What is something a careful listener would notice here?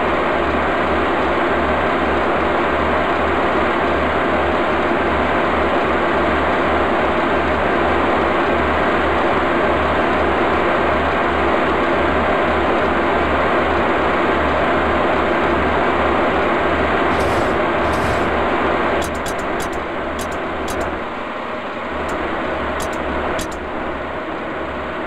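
A train's wheels click rhythmically over rail joints.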